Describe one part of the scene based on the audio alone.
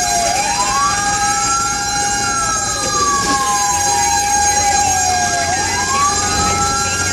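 A siren wails loudly, slowly rising and falling.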